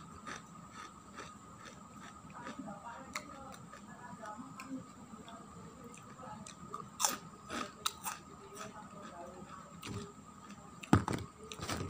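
Crispy crackers rustle and crackle in a man's fingers.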